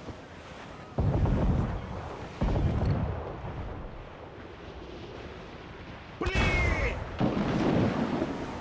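Heavy cannons boom loudly, one after another.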